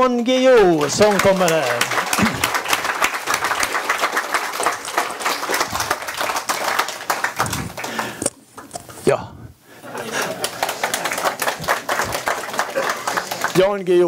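An elderly man claps his hands.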